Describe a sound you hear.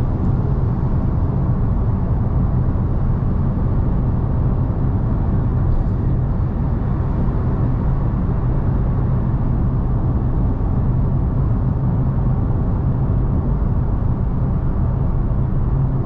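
Tyres roar steadily on the road surface.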